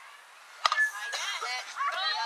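Young women shout and cheer from across an open field.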